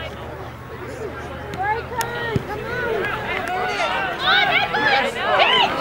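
A crowd of spectators shouts and cheers outdoors, growing louder and more excited.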